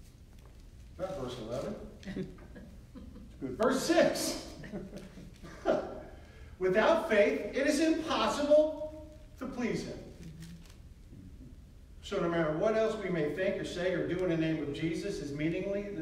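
A man speaks calmly, in a room with a slight echo.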